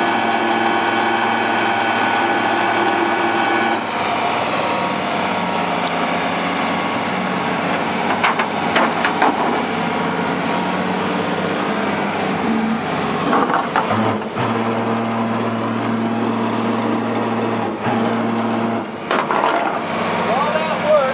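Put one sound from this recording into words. A truck engine idles steadily nearby.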